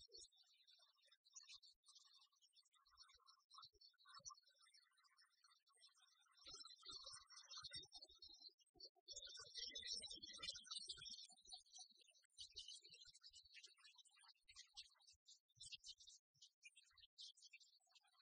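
Young women talk and laugh with animation.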